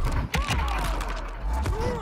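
Bones crunch and crack loudly.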